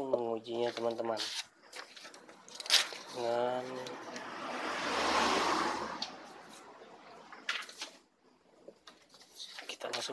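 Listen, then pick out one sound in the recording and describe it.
Printer parts click and rattle.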